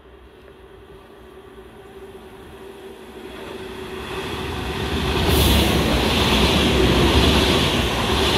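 A high-speed train approaches and rushes past with a loud roar of wind and wheels.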